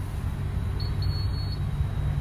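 A fuel pump beeps as a button is pressed.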